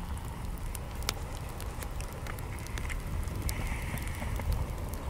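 A metal spoon clinks and scrapes inside a small pot.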